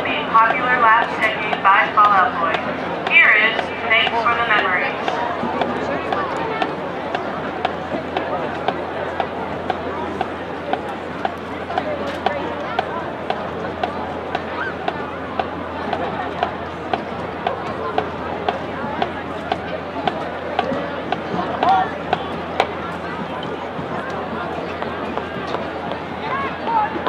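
A marching band plays brass horns outdoors.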